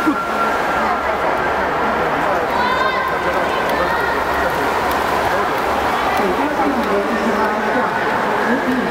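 Swimmers splash as they kick and stroke backstroke in an echoing indoor pool hall.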